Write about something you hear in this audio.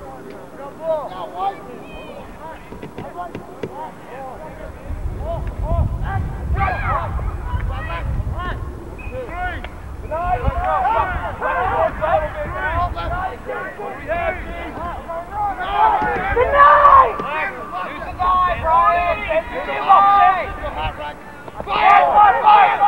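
Many young men talk and call out to each other outdoors.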